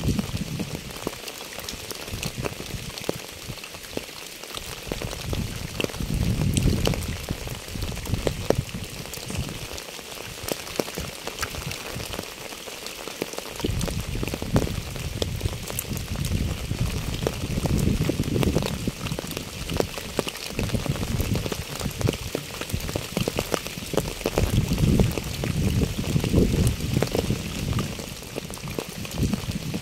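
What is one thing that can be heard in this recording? Wet leaves rustle in the wind.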